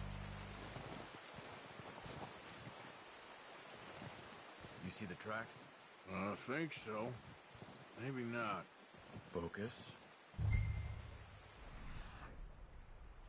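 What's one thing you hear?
Footsteps crunch slowly through deep snow.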